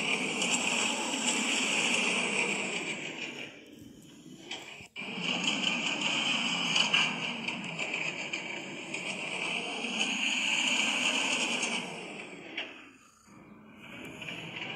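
A roller coaster train rumbles and rattles along its track.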